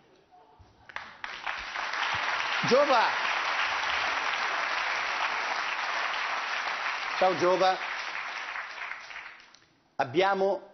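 A studio audience applauds and cheers loudly in a large hall.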